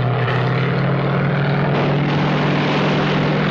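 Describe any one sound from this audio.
A propeller plane's engine drones loudly and steadily.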